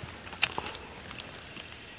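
A fishing reel clicks sharply as a line is cast.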